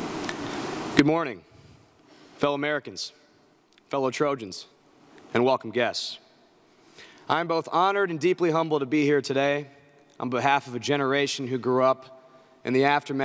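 A man speaks calmly into a microphone in a large hall, with pauses between phrases.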